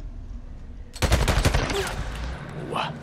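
A gunshot fires sharply.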